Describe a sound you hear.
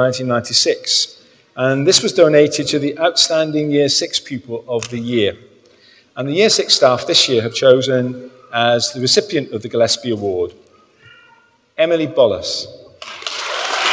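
A man speaks clearly into a microphone in a large echoing hall.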